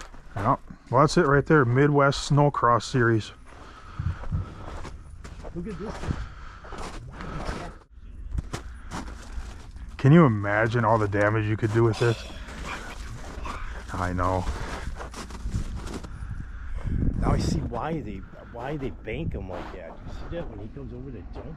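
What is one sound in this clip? A middle-aged man talks calmly and close by, outdoors.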